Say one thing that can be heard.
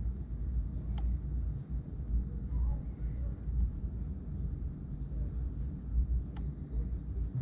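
A plastic clip clicks as hands fit and adjust a mount.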